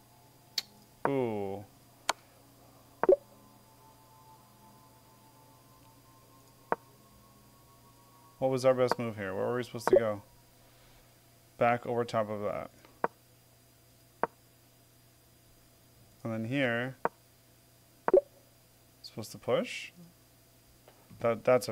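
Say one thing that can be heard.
A man speaks calmly into a close microphone, in short bursts.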